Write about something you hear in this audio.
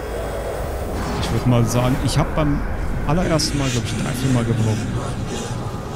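A loud magical blast booms and whooshes.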